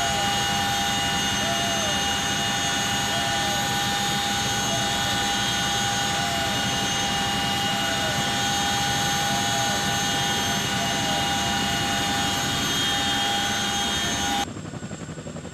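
A helicopter's engines roar loudly and steadily from close by, as heard from inside the aircraft.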